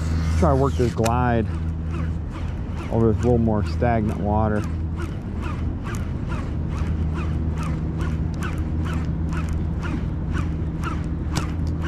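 A fishing reel clicks rapidly as its line is wound in.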